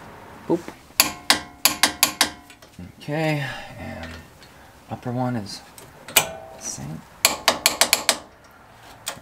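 A ratchet wrench clicks rapidly.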